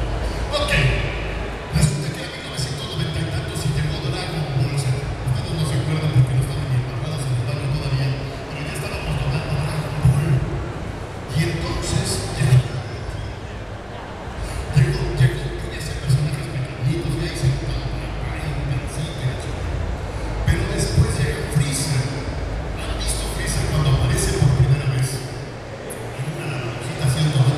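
Loud music with a pounding beat plays through loudspeakers in a large echoing hall.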